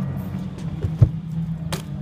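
A bike lands with a thud after a small ramp.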